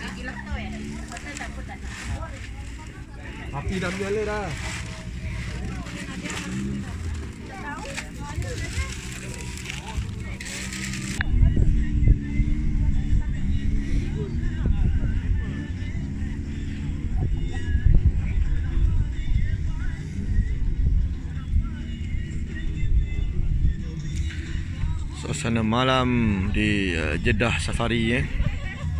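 Adult men and women chat in a group close by.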